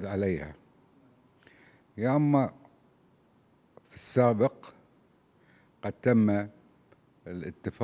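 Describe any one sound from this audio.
An older man speaks calmly and slowly into a microphone, with long pauses.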